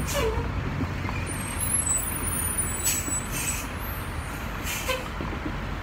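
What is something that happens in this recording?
A large bus drives past close by.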